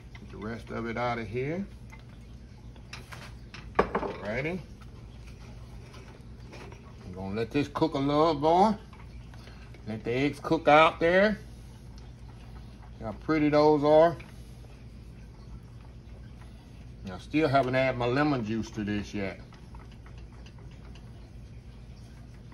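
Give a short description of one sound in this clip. A whisk stirs liquid in a metal pot.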